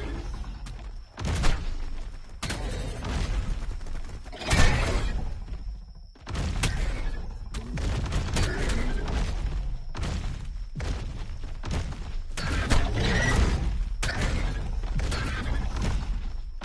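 Heavy footsteps thud on the ground as a large creature runs.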